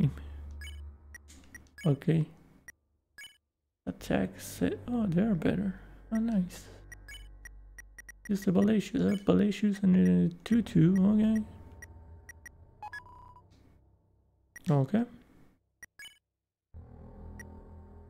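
Short electronic blips sound as a game menu is moved through.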